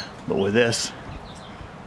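A man says a few words up close.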